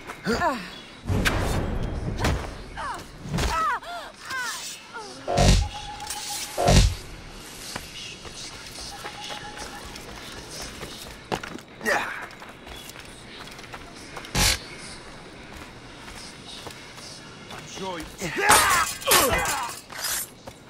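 Blades slash and strike with sharp metallic hits.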